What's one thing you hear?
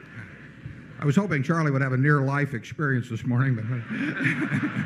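An elderly man speaks with animation through a microphone.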